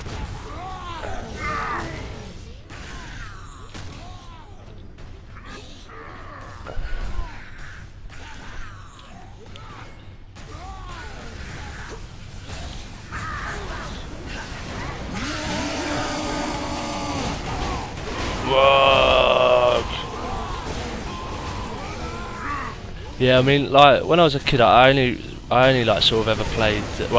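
Blades clash in a close fight.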